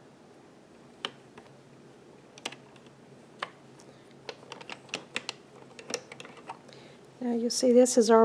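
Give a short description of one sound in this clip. A crochet hook clicks against plastic loom pegs.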